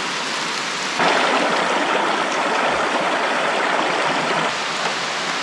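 A shallow stream rushes over stones.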